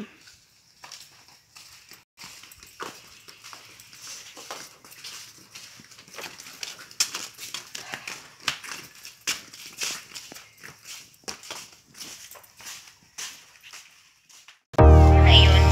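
Footsteps shuffle on a concrete path.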